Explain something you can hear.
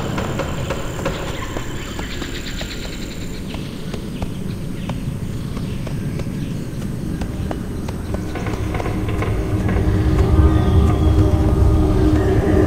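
Footsteps patter steadily on soft ground.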